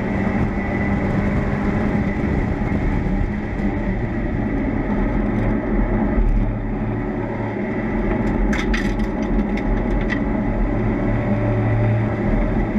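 Wind rushes loudly past the open car.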